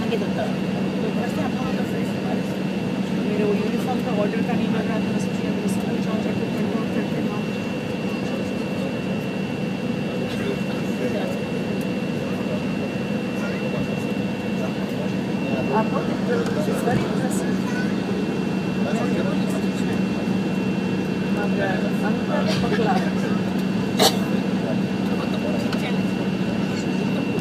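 Aircraft wheels rumble over the taxiway.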